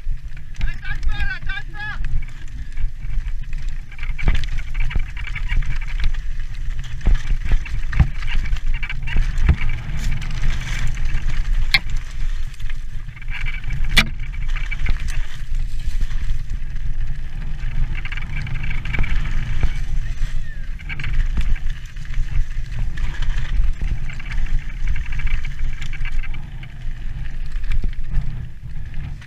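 Bicycle tyres rattle and crunch over loose rocks.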